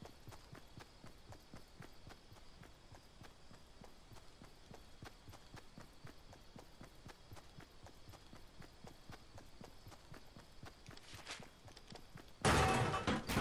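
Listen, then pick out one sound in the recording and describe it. Footsteps patter quickly on grass and dirt.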